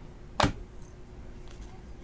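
A foil card wrapper crinkles in hands.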